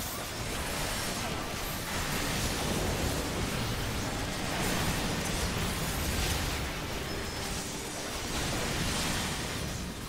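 Magic spells whoosh and burst with bright crackling effects.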